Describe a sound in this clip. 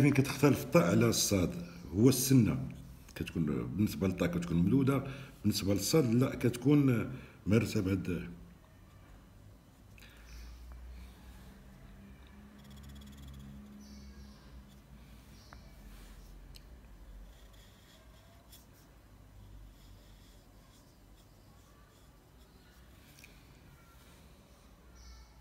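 A pen nib scratches softly across paper.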